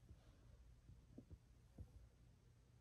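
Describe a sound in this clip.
A chess piece is set down on a board with a soft knock.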